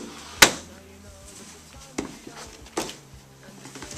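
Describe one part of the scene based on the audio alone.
A chair knocks and scrapes on a carpeted floor.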